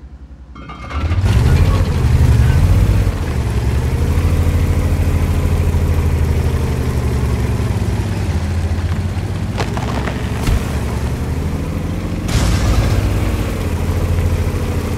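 A tank engine rumbles and revs as it drives.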